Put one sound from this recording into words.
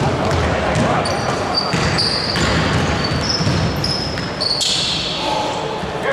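Sneakers squeak sharply on the court floor.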